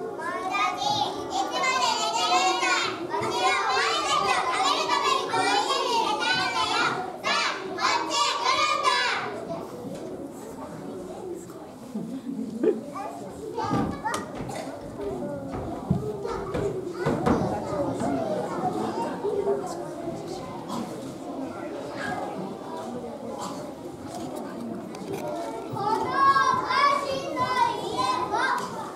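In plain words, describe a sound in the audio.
Young children sing together in a large echoing hall.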